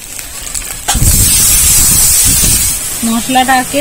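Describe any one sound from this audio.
Water pours into a hot pan with a loud burst of hissing.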